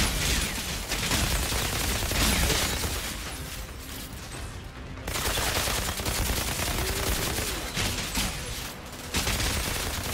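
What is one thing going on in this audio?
Energy blasts crackle and whoosh.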